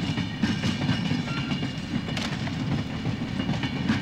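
Train wheels clatter steadily over the rails.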